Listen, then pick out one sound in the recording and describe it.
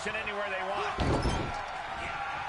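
A sharp slap of a kick landing.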